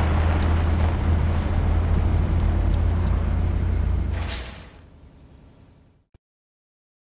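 A heavy truck engine rumbles loudly nearby, then fades away.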